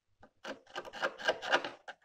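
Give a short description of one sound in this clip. A metal tool scrapes against a car's bodywork.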